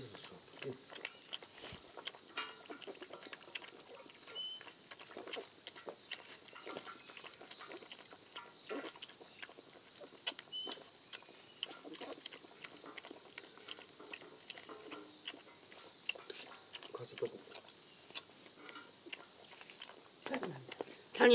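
Kittens lap milk from a metal bowl with quick wet licks.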